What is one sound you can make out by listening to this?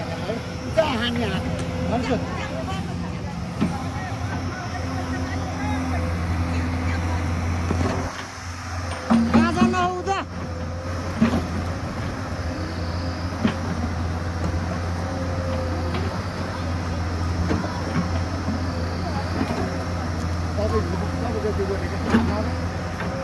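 An excavator bucket scrapes and digs into dirt.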